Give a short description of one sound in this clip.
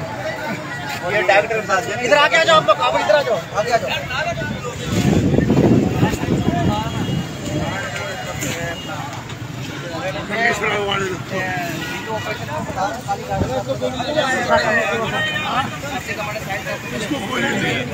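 Several men shout angrily over one another close by.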